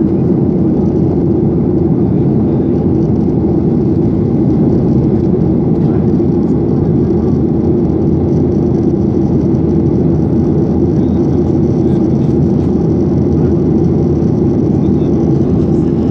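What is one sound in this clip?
Jet engines roar steadily inside an airplane cabin in flight.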